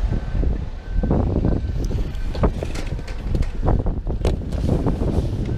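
A canvas curtain rustles and flaps.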